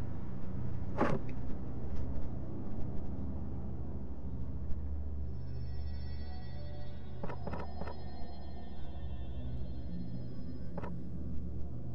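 Soft menu clicks sound as selections change.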